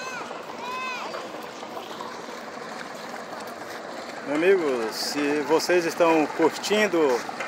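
Water laps gently against a boat's hull.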